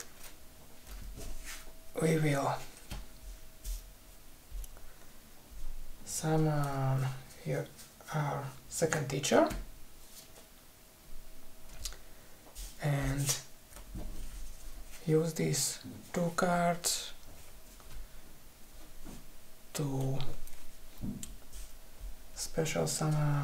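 Playing cards slide and tap softly on a cloth mat.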